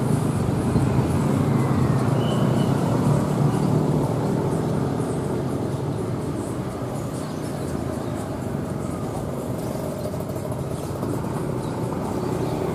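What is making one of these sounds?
A diesel locomotive rumbles loudly as it slowly approaches.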